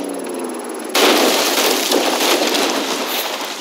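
A car crashes through bushes and branches.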